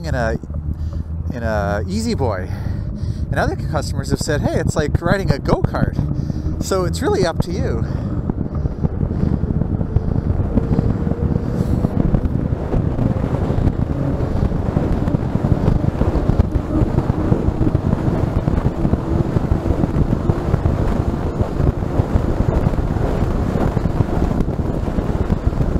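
Wind rushes past steadily and grows stronger as the ride speeds up downhill.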